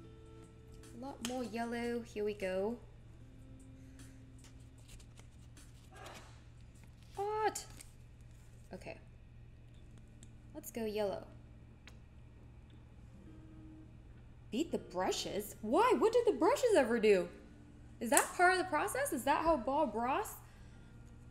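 A young woman talks with animation close to a microphone, in short bursts.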